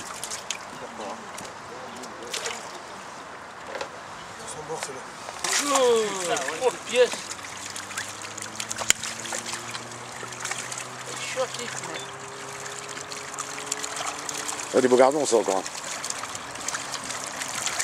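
Water sloshes and splashes as a tub is dipped and moved in shallow water.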